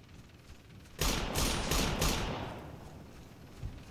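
A rifle fires several sharp shots in quick succession that echo away outdoors.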